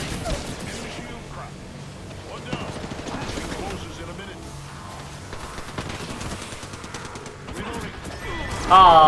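Gunfire and crackling electric blasts ring out from a video game.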